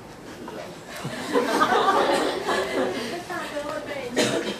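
Several men laugh together.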